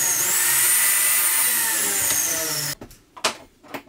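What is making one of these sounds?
A power miter saw whines loudly as it cuts through wood.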